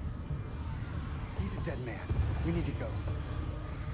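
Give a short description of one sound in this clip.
Another young man answers in a low voice.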